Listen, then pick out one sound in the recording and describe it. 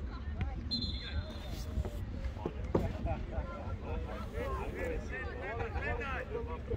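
Young players shout to each other across an open field, far off.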